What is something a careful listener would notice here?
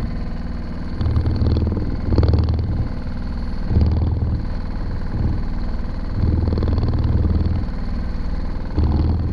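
A fishing reel clicks and whirs as a man winds in the line.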